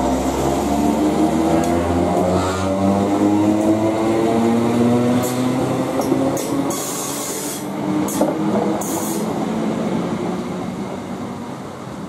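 An electric train rushes past close by, its motor whine slowly falling.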